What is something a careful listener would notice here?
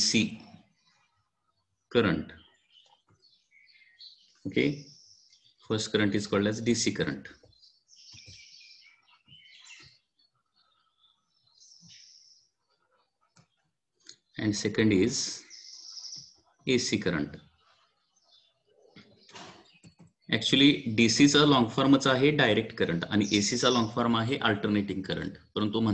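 A young man speaks calmly and explains close to a microphone, with pauses.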